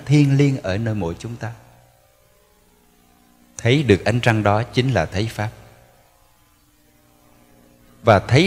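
A man speaks slowly and calmly through a microphone in an echoing hall, pausing between phrases.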